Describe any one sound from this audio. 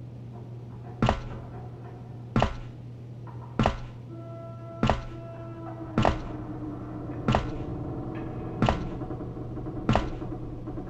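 Metal ladder rungs clank slowly as someone climbs.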